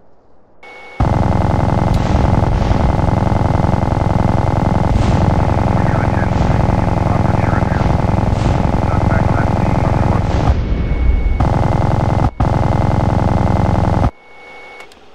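A minigun fires a rapid, droning stream of shots.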